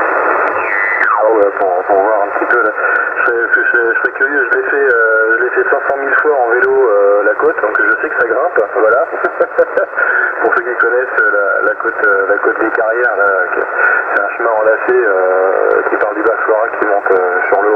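A distorted voice comes through a radio loudspeaker.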